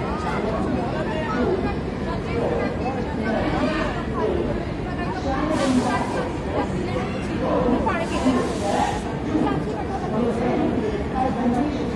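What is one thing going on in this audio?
Sandals slap on a hard floor as a person walks.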